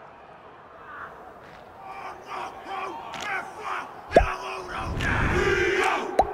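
A group of men chant loudly in unison.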